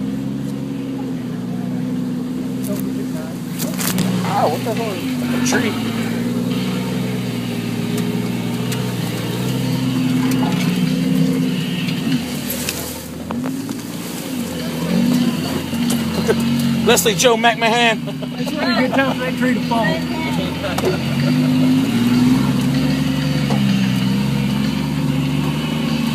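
A vehicle body jolts and rattles over bumps.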